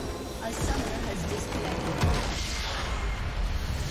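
A huge crystal structure explodes with a deep boom.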